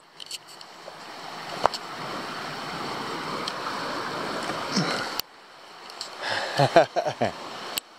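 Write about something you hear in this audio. A shallow river rushes over stones nearby.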